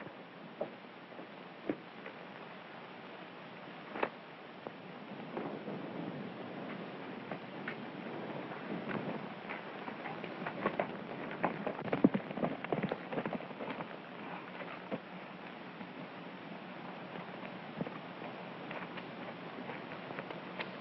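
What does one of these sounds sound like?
Horse hooves clop and thud on hard dirt.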